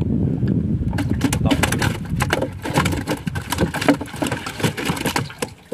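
A fish flaps and splashes against a wooden boat.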